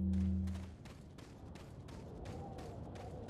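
Footsteps scuff slowly across a stone floor.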